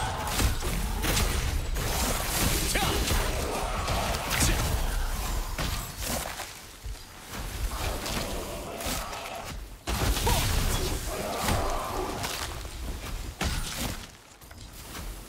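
Blades clash and strike repeatedly.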